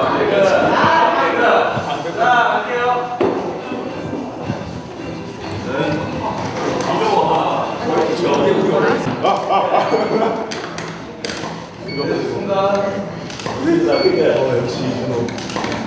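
Young men chatter with animation nearby.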